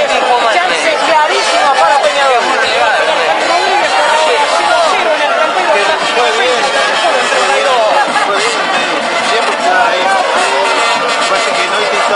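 A crowd of spectators sings and chants loudly outdoors.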